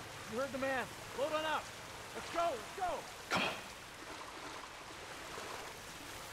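Water pours from pipes and splashes into a pool.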